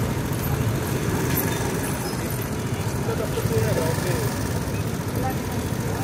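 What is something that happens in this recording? A scooter engine idles and pulls away slowly.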